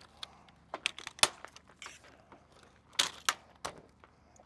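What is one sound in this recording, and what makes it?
A metal awning pole clicks and knocks.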